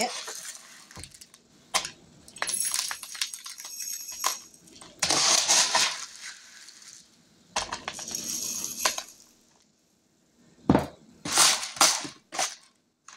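Dry pasta rattles and rustles as a scoop digs through it.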